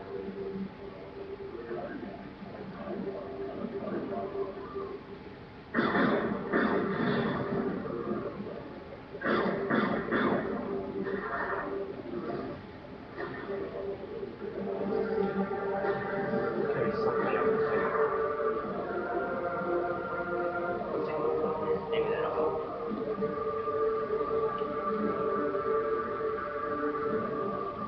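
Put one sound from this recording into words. Tense video game music plays through a television speaker.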